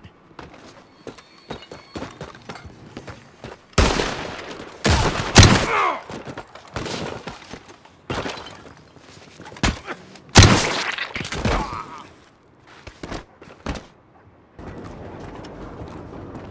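Footsteps tap on a hard roof.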